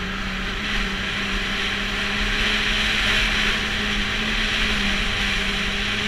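A snowmobile engine drones steadily up close.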